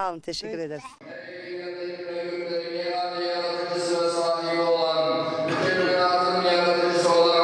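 A middle-aged man chants loudly in long, drawn-out melodic notes.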